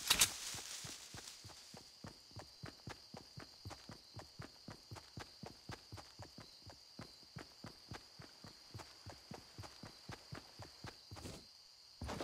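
Footsteps run quickly across grass.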